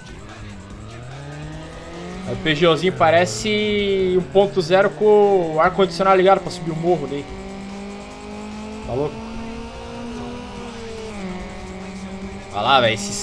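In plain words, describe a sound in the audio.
A racing car engine revs and whines as it speeds up.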